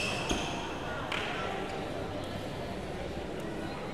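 A shuttlecock is struck with a sharp pop of a racket.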